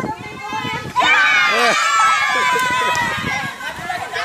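A woman laughs and screams with delight.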